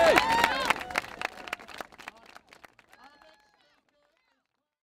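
A large outdoor crowd cheers and claps, then fades away.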